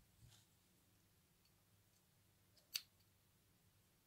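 Small scissors snip a thread.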